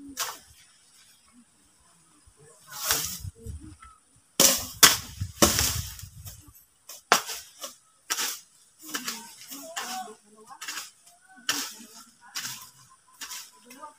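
A hoe chops into dry soil with repeated dull thuds.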